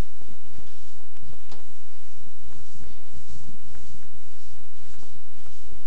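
A man erases a chalkboard with rubbing strokes.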